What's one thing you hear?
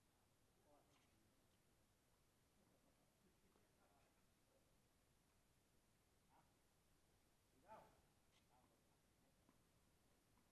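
Tennis rackets hit a ball back and forth with hollow pops.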